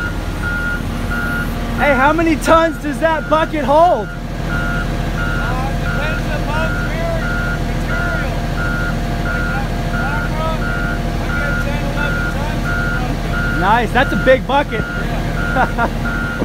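A heavy loader's diesel engine rumbles steadily nearby.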